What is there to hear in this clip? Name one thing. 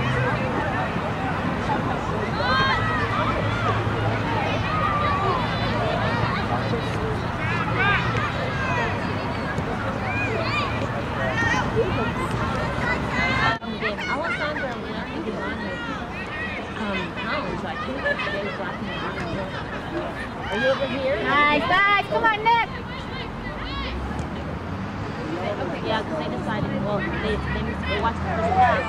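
Young women shout and call out across an open field outdoors.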